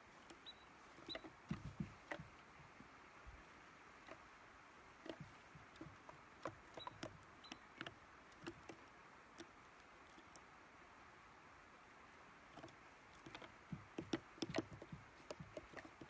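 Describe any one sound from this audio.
A squirrel's claws patter on wooden boards.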